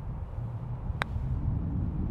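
A golf putter taps a ball once.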